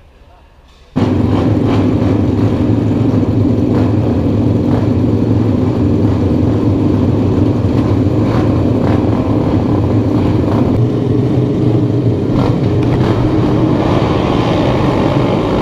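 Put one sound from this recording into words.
A row of single-cylinder four-stroke racing motorcycles idles.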